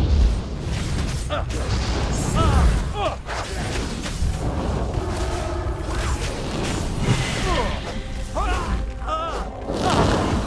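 Weapons clash and spells burst in a fight.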